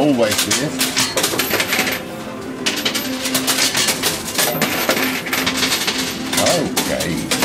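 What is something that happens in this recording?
Coins clink and clatter as they slide and drop.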